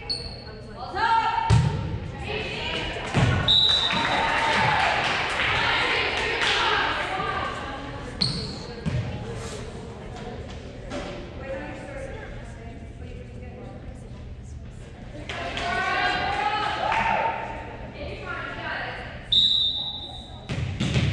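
Children shout and cheer in a large echoing gym.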